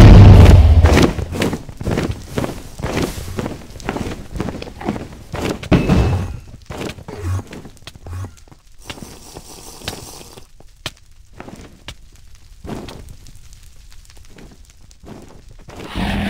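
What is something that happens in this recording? Blocks are knocked and placed with short thuds.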